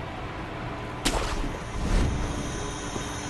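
A sharp whoosh rings out as a figure leaps up to a roof.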